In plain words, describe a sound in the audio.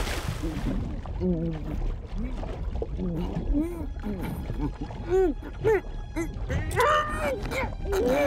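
A man grunts and groans in muffled bursts.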